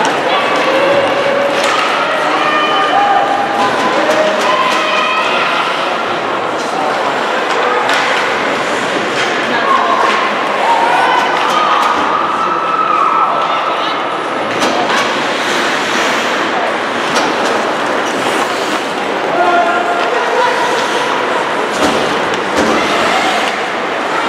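A crowd of spectators chatters and shouts in a large echoing rink.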